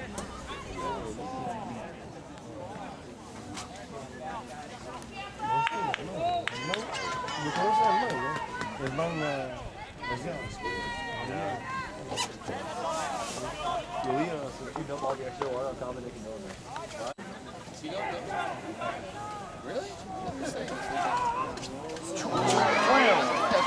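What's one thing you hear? A crowd of spectators shouts and talks outdoors.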